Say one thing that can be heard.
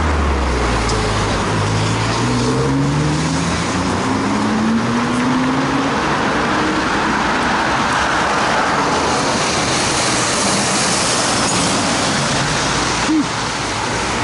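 Traffic rumbles steadily on a busy street nearby.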